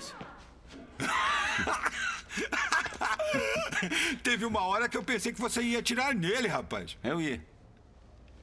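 A second man laughs and talks with animation, close by.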